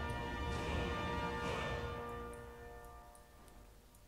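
A bright magical chime rings out and fades.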